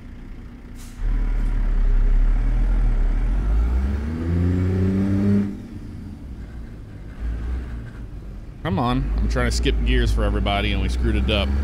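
A heavy truck engine rumbles and revs up as it pulls away.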